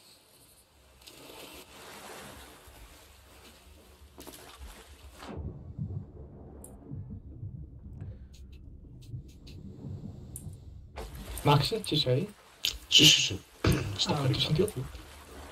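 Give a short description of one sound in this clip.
Water splashes around a swimmer.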